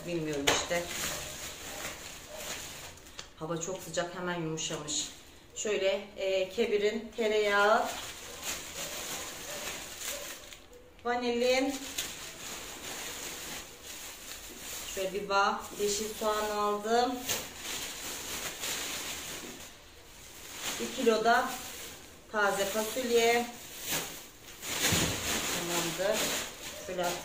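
A middle-aged woman talks calmly close by.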